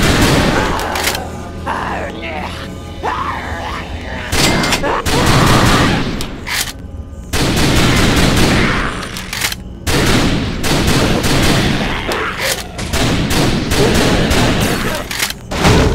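A pistol is reloaded with a metallic click.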